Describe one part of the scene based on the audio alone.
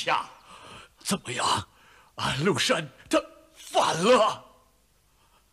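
An elderly man speaks with emotion nearby.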